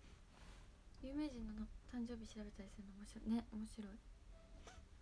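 A young woman speaks softly and briefly, close to a microphone.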